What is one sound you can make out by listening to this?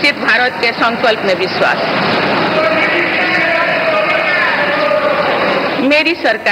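An elderly woman speaks formally into a microphone in a large echoing hall.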